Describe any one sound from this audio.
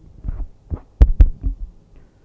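A microphone knocks as a hand adjusts it.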